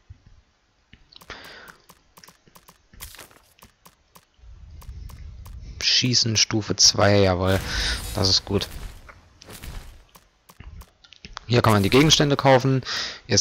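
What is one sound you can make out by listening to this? Short menu clicks tick as selections change.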